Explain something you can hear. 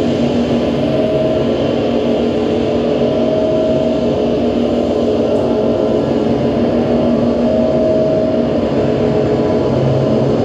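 An electronic synthesizer drones with sustained, wavering tones.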